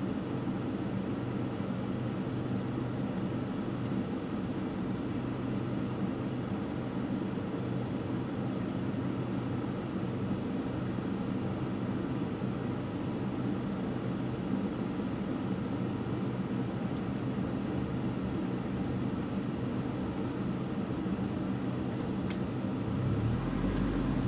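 A car engine idles with a low, steady hum, heard from inside the car.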